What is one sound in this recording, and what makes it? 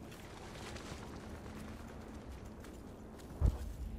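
A single gunshot cracks nearby.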